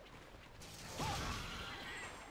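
An electric blast crackles and zaps.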